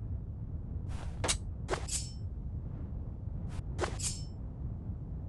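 A knife swishes through the air several times.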